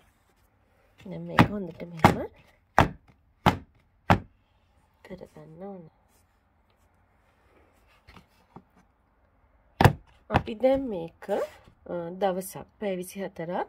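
Fingers tap on a plastic tub.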